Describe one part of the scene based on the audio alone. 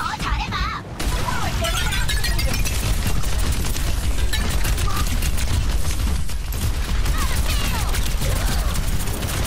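Rapid futuristic gunfire rattles without pause.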